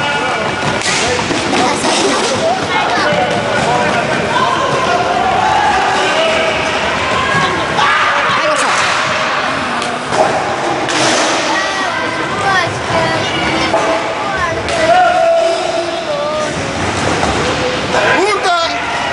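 A crowd of spectators shouts and cheers, echoing in a large hall.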